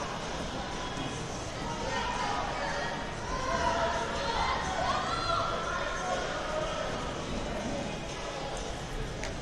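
A crowd of men and women murmur and chatter in a large echoing hall.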